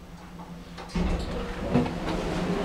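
A lift car stops with a heavy clunk.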